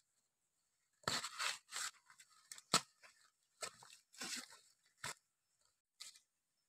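Large leaves rustle and crinkle as they are laid on the ground.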